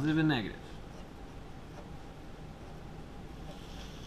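A marker scratches on paper.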